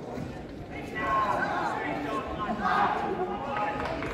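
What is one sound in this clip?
Young men shout together loudly from close by.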